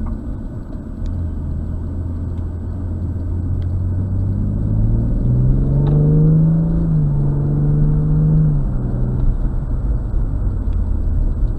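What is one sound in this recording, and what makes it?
A car engine roars from inside the car, rising in pitch as it speeds up and then easing off.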